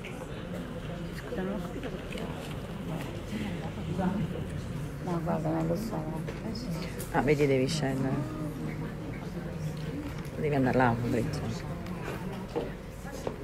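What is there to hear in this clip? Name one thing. A woman speaks into a microphone through loudspeakers in an echoing hall.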